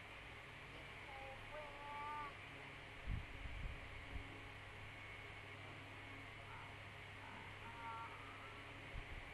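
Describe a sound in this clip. A child speaks softly over an online call.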